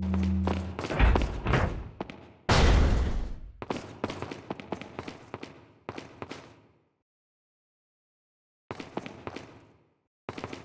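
A pistol fires several times, each shot echoing loudly off stone walls.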